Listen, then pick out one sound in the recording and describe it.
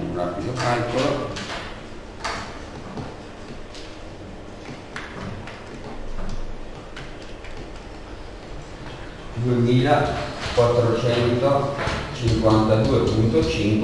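A man speaks calmly, as if teaching.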